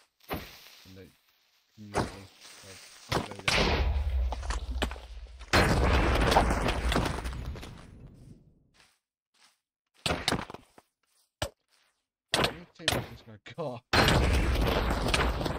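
Sword hits land with sharp thuds.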